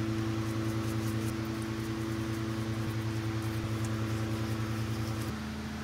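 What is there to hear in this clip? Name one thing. A stiff brush scrubs a metal part.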